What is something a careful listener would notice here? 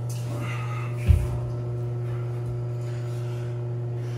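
Water splashes as feet step into a cold tub.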